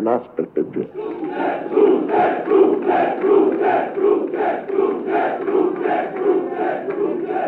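A large crowd chants in a steady rhythm, echoing in a hall.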